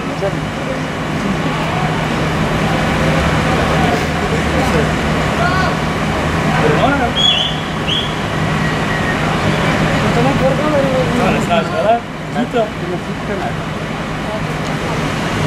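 Men talk at a distance outdoors.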